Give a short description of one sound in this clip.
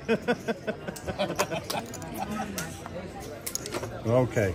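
Casino chips clack together on a table.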